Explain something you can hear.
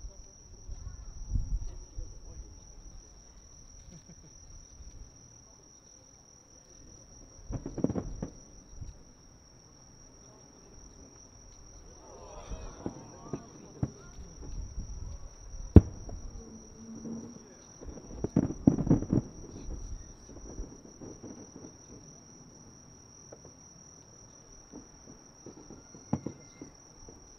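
Fireworks burst with deep booms and sharp bangs in the distance.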